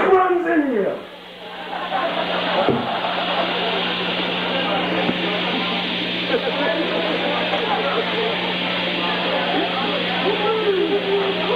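An amplifier hums steadily and loudly.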